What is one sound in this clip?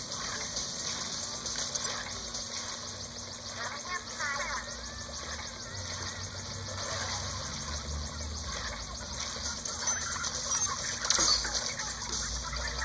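Upbeat electronic game music plays through a television speaker.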